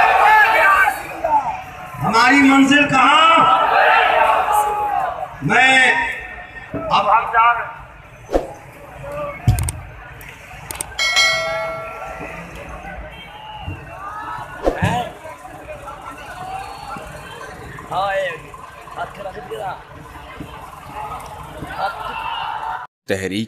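A large crowd chants outdoors.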